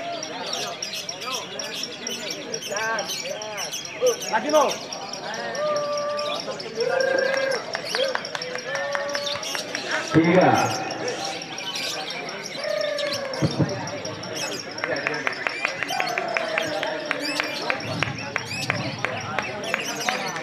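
Many caged birds chirp and whistle busily.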